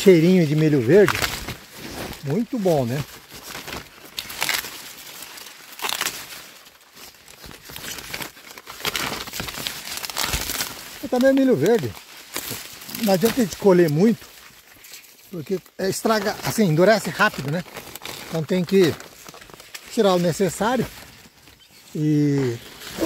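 Stiff leaves rustle and brush close by.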